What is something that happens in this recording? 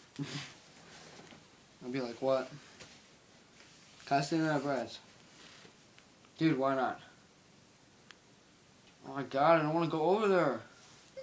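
A teenage boy speaks in short, drawn-out bursts close by.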